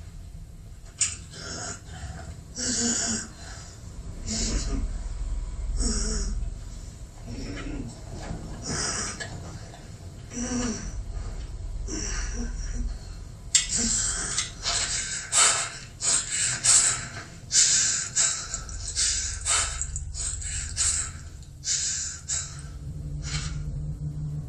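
A man breathes heavily and speaks in a strained voice close by.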